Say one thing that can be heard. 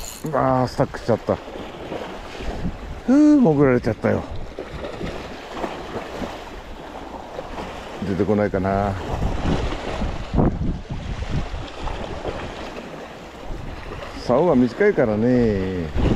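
Wind blows outdoors over open water.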